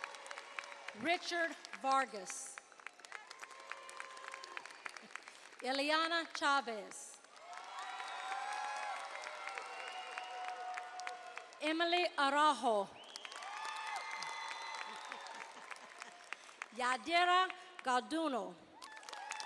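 Young women whoop and cheer loudly in short bursts.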